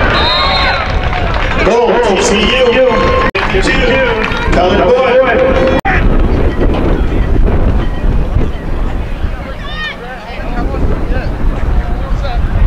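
Spectators and players shout and cheer across an open field.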